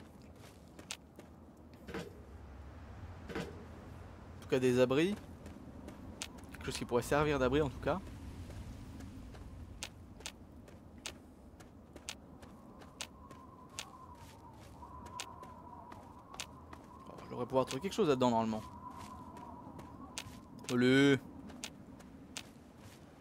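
Footsteps crunch steadily over gravel and dry ground.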